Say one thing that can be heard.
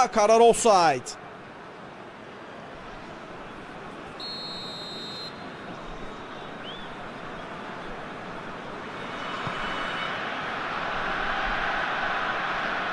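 A large stadium crowd roars steadily and swells louder toward the end.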